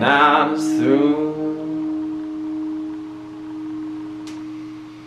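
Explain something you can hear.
An acoustic guitar chord is strummed and rings out, slowly fading.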